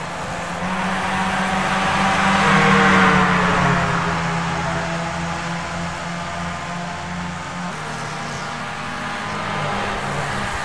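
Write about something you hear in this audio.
A racing car engine roars at high revs, its pitch rising and dropping with gear changes.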